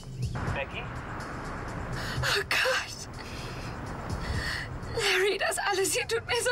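A young woman speaks tearfully into a phone, close by.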